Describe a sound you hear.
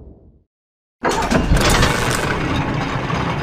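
A metal cable car rattles and clanks as it moves along a cable.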